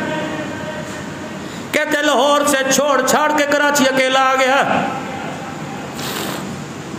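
A middle-aged man speaks and chants with feeling into a microphone.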